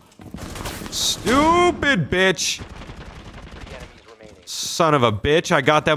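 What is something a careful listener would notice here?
A rifle fires several quick shots.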